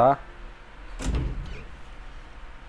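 A heavy door creaks open and thuds.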